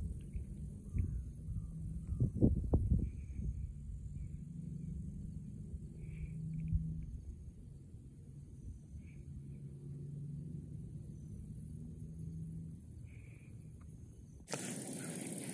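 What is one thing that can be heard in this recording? Wind rustles through grass outdoors.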